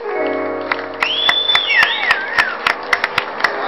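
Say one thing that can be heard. An electric guitar plays a sliding melody.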